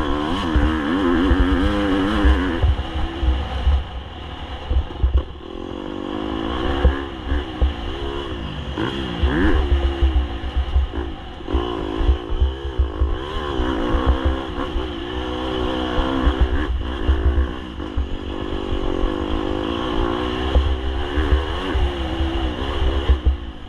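Tyres crunch and rattle over a rough gravel track.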